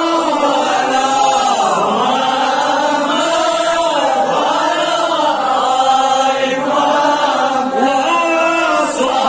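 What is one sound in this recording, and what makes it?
A man chants loudly and melodically through a microphone.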